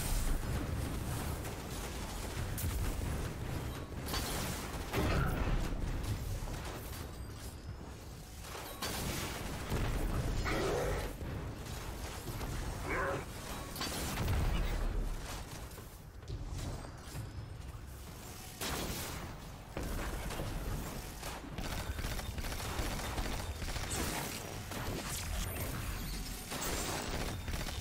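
Heavy gunfire booms and cracks in bursts.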